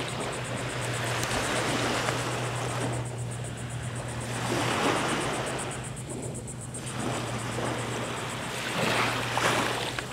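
Wind gusts across the microphone outdoors.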